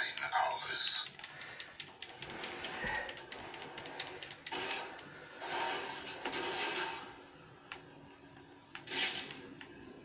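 Fighting sounds with punches and thuds play from a television speaker.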